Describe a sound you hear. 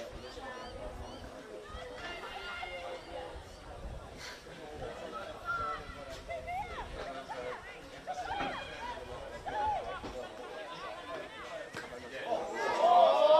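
Players shout to each other across an open field outdoors.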